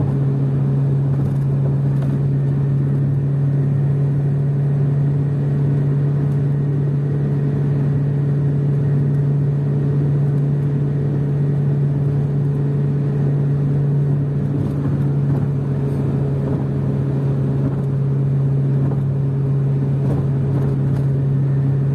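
A car engine drones steadily at high speed from inside the car.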